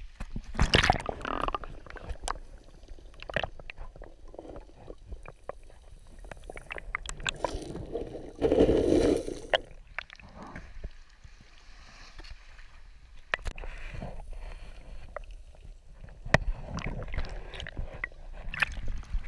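Water bubbles and gurgles close by, muffled as if heard underwater.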